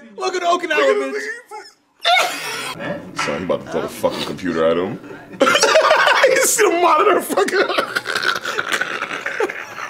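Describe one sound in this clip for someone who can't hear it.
Two young men laugh loudly and heartily close by.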